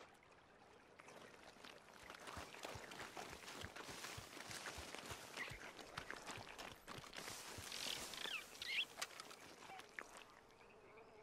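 Footsteps rustle and crunch through dry brush.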